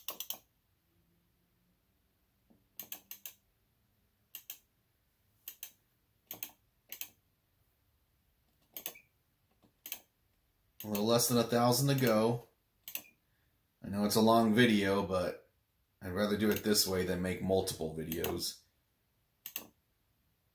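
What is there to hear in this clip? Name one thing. Short electronic blips sound again and again as a menu scrolls.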